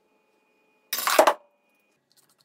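A metal tool clanks down onto a hard surface.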